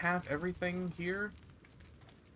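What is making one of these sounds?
A man speaks animatedly into a microphone.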